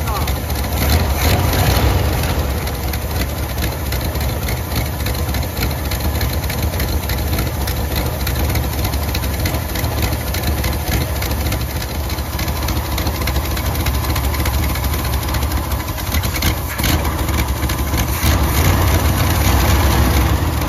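A car engine idles with a steady, low rumble close by.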